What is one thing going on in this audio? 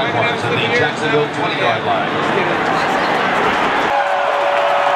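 A large stadium crowd murmurs and cheers, echoing through the arena.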